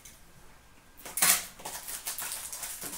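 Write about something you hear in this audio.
A plastic case clicks and rattles as it is handled.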